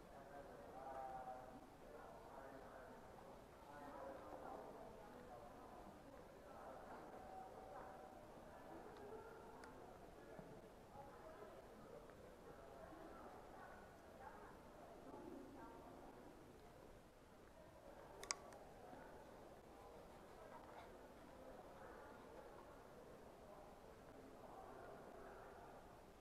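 Voices murmur and echo in a large indoor hall.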